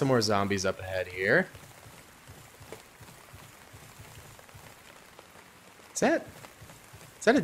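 Footsteps rustle quickly over soft forest ground.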